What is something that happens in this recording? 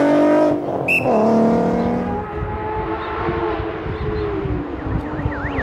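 A sports car's engine approaches.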